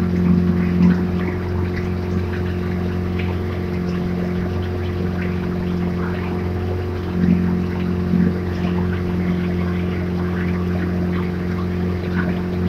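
Water rushes and laps steadily past a moving boat.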